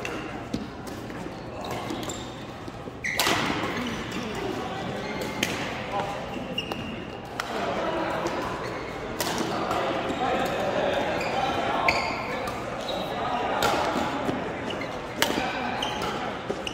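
Badminton rackets smack a shuttlecock back and forth in an echoing hall.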